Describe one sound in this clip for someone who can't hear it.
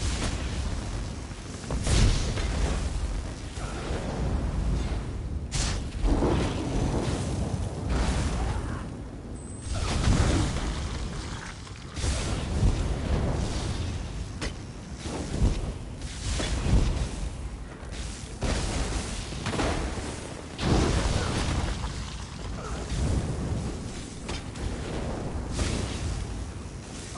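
Magic spells crackle and blast in a fight.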